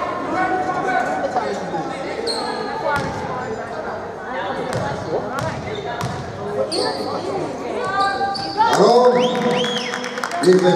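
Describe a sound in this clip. Young women players call out loudly to each other.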